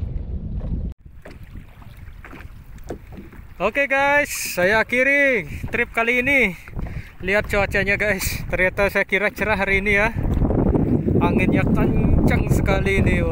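Choppy water laps and splashes.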